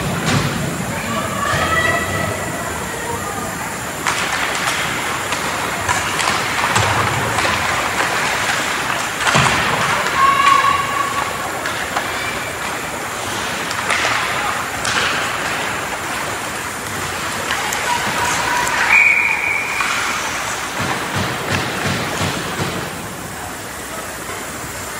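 Ice skates scrape and hiss across the ice in a large echoing rink.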